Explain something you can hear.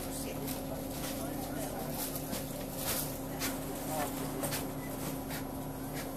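Footsteps thud on a bus floor.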